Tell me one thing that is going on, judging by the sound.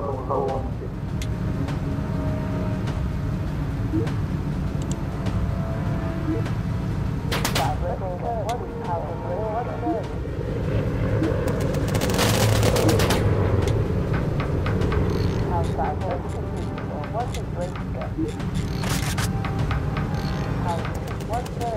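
The propeller engines of a four-engine bomber drone.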